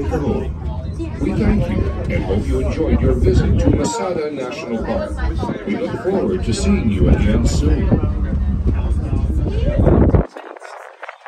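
A cable car cabin rumbles steadily as it glides along its cable.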